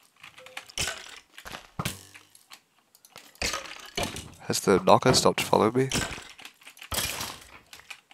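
A sword strikes a skeleton with quick dull hits.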